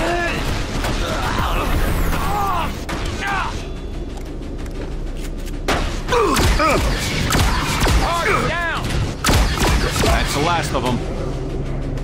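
Energy weapons fire in rapid bursts with whining zaps.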